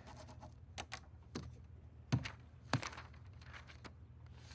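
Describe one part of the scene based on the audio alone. A rubber stamp thuds onto paper a few times.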